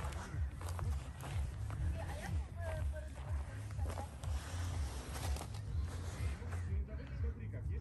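A small dog's paws scuff on a fabric blanket.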